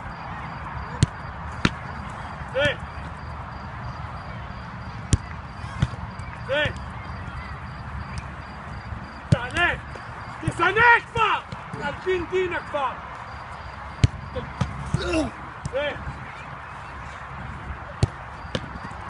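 A football is kicked hard with a sharp thud, again and again.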